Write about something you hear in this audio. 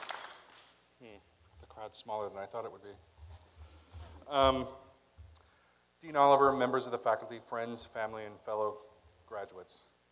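A man speaks calmly into a microphone over loudspeakers in an echoing hall.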